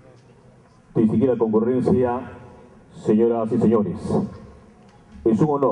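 A man speaks formally through a microphone in an echoing hall.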